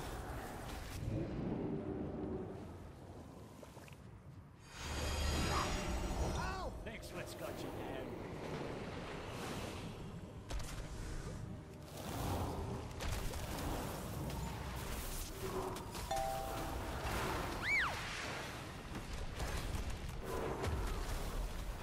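Spell effects whoosh and chime during a fantasy battle.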